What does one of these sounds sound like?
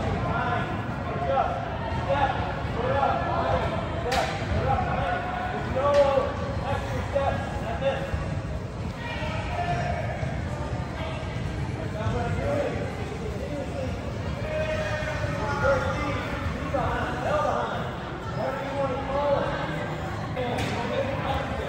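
A soccer ball is kicked with dull thuds.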